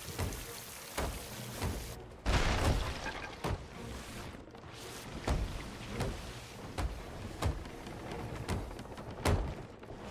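Water gushes and sprays through holes in a wooden hull.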